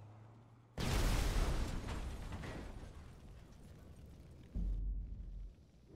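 Flames crackle and roar.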